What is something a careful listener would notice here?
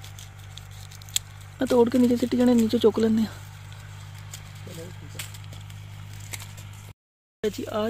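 Leaves rustle as a hand pushes through the branches of a bush.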